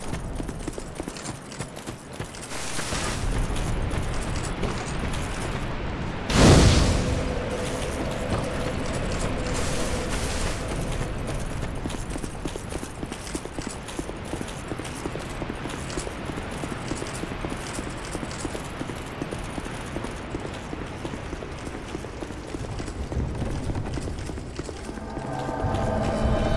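Armoured footsteps clank steadily on stone and leaves.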